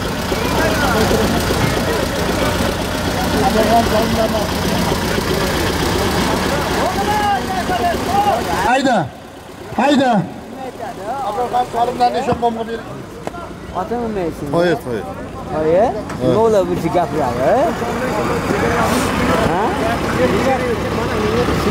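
Several men talk and call out loudly nearby.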